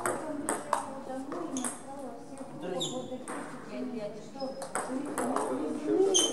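A table tennis ball clicks back and forth off paddles and a table.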